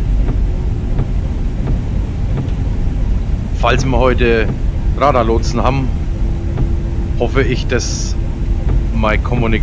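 Windshield wipers thump back and forth.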